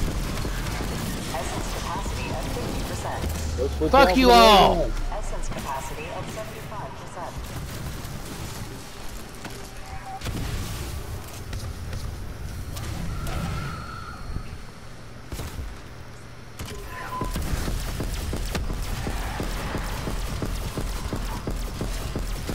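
Gunfire from a weapon rattles in rapid bursts.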